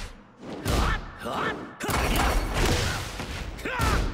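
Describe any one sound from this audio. A body slams hard onto the floor.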